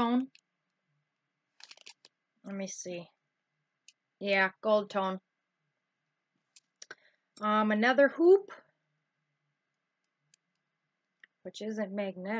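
A woman talks calmly and close up, in bursts with pauses.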